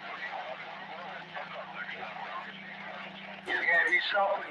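A radio gives a steady low hum.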